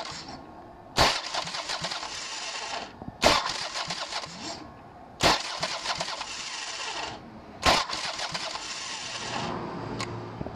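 A motorcycle starter pinion clanks into the clutch ring gear and cranks it with a whirring grind, in repeated bursts.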